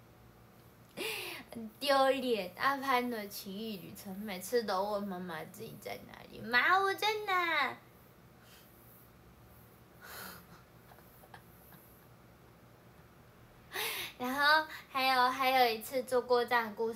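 A young woman speaks playfully and close by.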